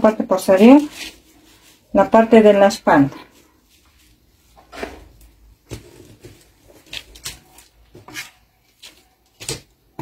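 Paper rustles and crinkles as it is smoothed and shifted.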